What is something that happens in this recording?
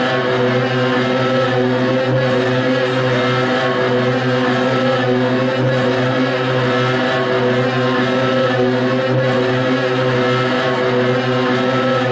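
An electric guitar plays loudly through amplifiers, echoing in a large hall.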